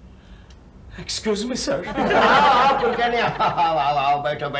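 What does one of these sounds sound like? A middle-aged man speaks loudly and with animation, close by.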